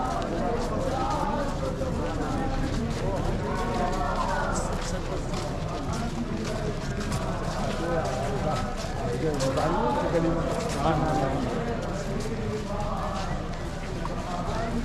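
A crowd of men and women murmurs and talks outdoors.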